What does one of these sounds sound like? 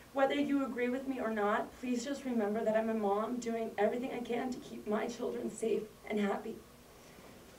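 A woman speaks calmly, reading out.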